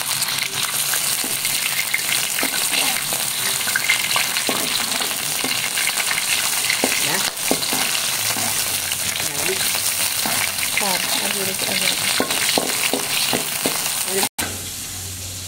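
A metal spatula scrapes against a wok.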